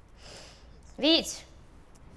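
A young woman gasps.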